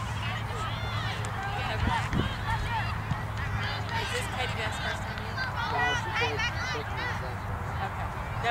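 A crowd of adult spectators talks and calls out nearby, outdoors.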